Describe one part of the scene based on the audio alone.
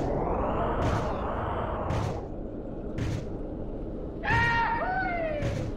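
Windshield wipers swish back and forth.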